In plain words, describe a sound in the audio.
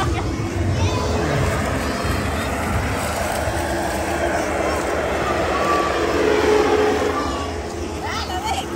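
A foam machine whooshes and gushes loudly.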